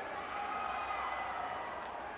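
A man speaks into a microphone, heard over loudspeakers in a large echoing hall.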